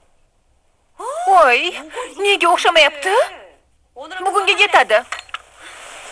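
A young woman speaks in a tense voice.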